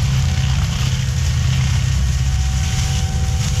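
A forestry mulcher grinds through brush.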